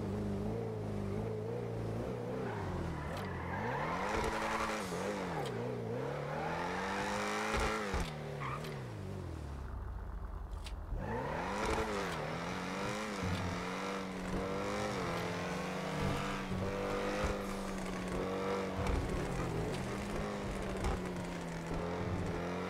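A car engine revs up and down, rising and falling in pitch.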